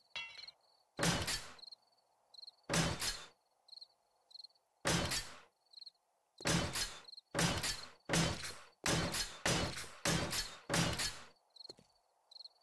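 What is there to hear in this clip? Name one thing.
A nail gun fires repeatedly into blocks.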